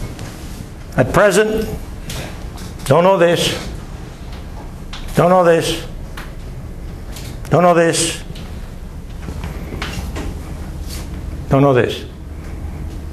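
An elderly man speaks in short bursts in a room with some echo.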